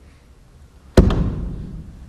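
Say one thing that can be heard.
A fist bangs hard on a wooden pulpit.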